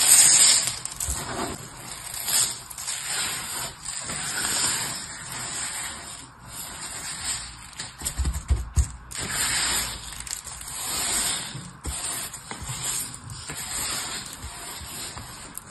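Hands sweep and rustle through fine, gritty glitter close by.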